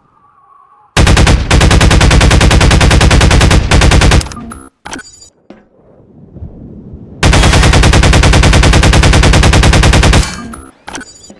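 A rapid-fire gun fires long, loud bursts.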